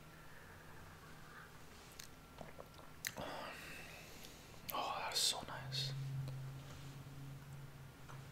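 An elderly man sips a drink.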